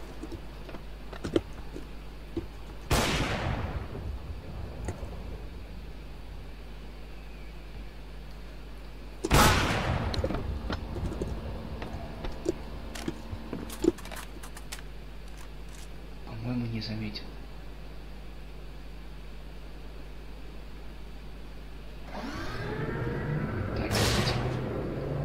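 Footsteps tread on a hard floor.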